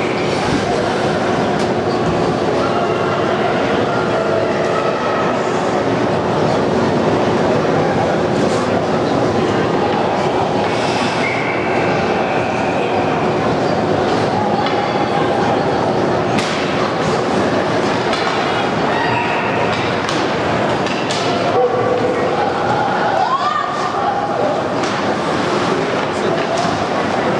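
Spectators murmur and call out from the stands.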